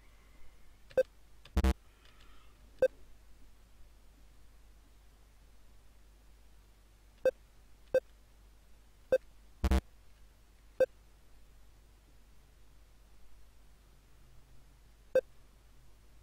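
Short electronic beeps sound as a game character jumps.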